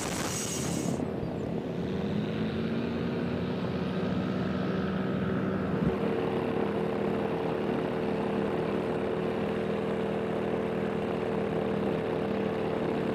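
A small aircraft's propeller engine drones steadily.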